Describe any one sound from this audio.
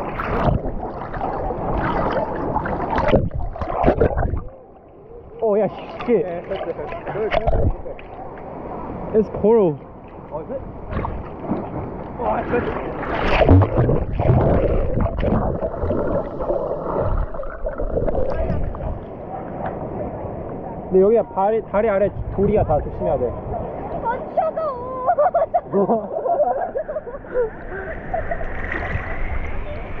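Water sloshes and splashes close by.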